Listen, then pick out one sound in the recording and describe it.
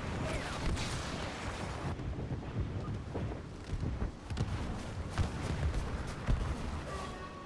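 Blaster shots crack and thud in short bursts.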